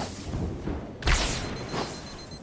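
An energy blast crackles and bursts with a loud boom.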